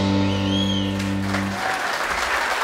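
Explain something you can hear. A piano plays chords.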